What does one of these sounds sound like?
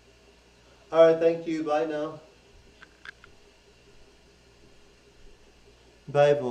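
A woman speaks briefly, close by, in a high voice.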